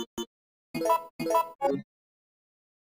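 Short electronic beeps sound from a game menu.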